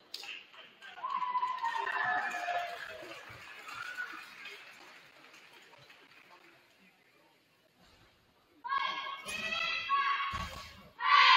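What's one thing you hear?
Young women shout a cheer together in a large echoing gym.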